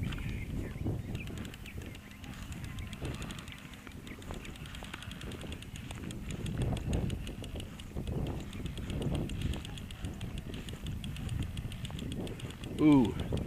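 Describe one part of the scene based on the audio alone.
A fishing reel ticks rapidly as its handle is cranked.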